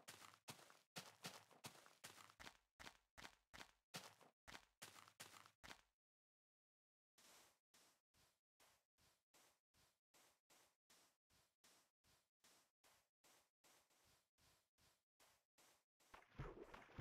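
Footsteps crunch steadily on sand and grass.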